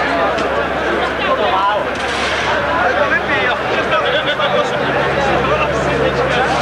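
A crowd of men and women chatters outdoors close by.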